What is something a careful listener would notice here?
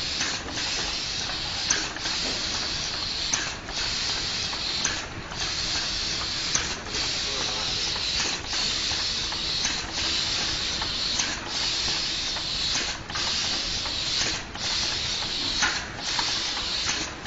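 A robotic arm whirs and clicks as it picks up items.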